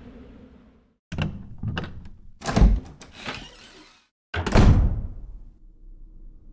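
A small metal mechanism clicks and clunks open.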